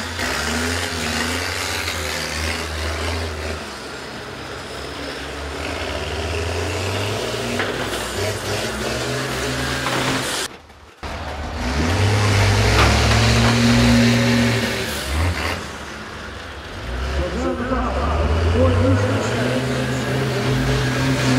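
Bus engines rumble and roar.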